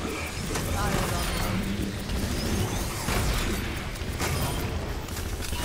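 A futuristic gun fires bursts of energy shots.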